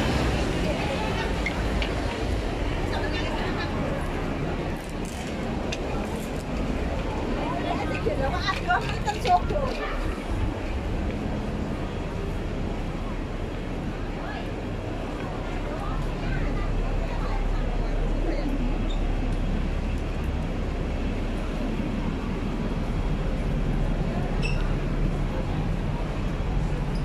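A busy street crowd murmurs all around outdoors.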